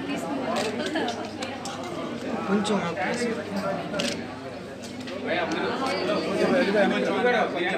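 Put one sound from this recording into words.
A crowd of people talk and murmur nearby.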